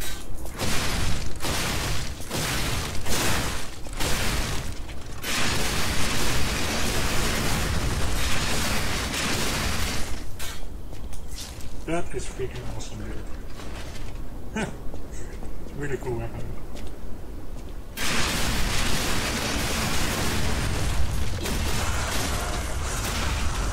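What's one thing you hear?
Swords clash and slash in quick blows.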